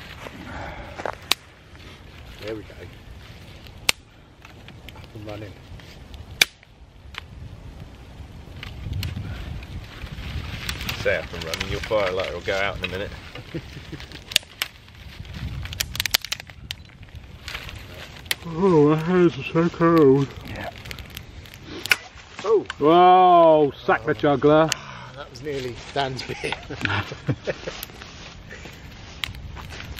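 A man snaps dry twigs with sharp cracks.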